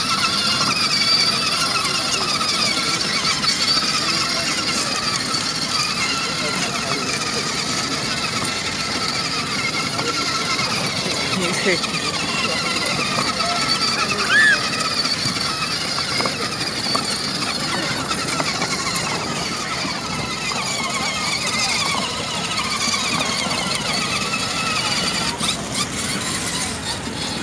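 A toy ride-on car plays a tinny electronic tune.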